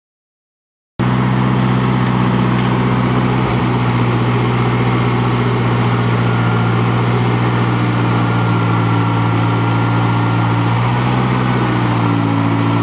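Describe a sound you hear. A skid-steer loader's engine runs with a loud, steady rumble.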